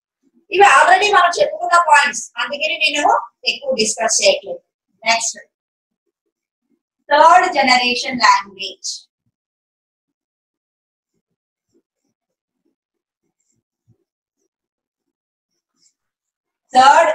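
A woman speaks calmly and clearly close to a microphone, explaining.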